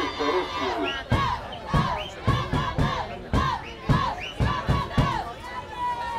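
Hands clap in rhythm with the chanting.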